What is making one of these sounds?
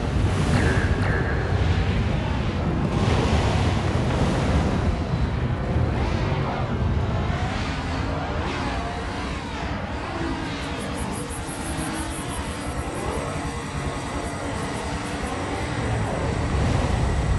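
Rockets whoosh as they launch.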